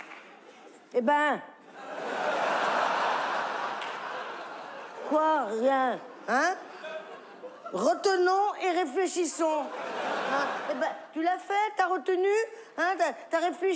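A middle-aged woman speaks animatedly into a microphone.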